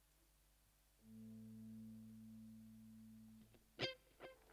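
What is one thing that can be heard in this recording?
A keyboard holds a steady low note.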